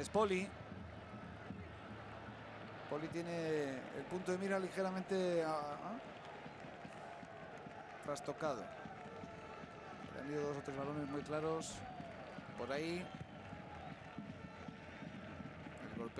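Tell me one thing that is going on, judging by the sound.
A large stadium crowd murmurs steadily in the distance.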